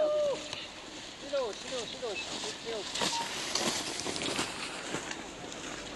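A skier glides past close by, skis swishing and scraping on snow.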